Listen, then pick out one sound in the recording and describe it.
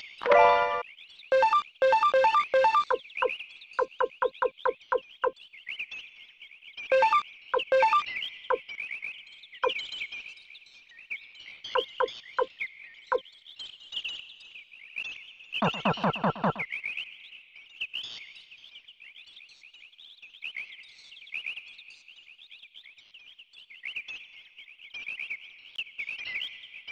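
Birds chirp and twitter steadily in a forest.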